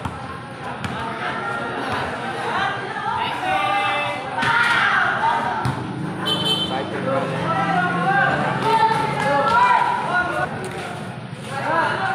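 A crowd of children shouts and cheers excitedly nearby, outdoors.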